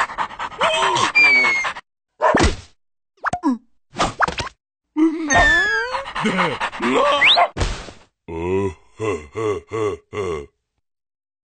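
A small creature chatters and squeals in a high, squeaky voice.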